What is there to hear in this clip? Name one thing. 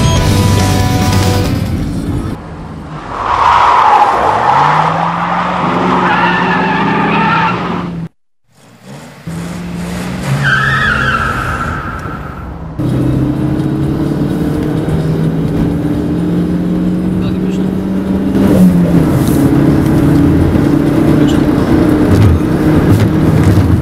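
A car engine revs as the car accelerates, heard from inside the car.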